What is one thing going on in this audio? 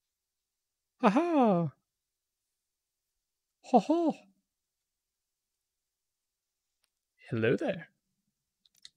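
A young man talks briefly and with animation into a close microphone.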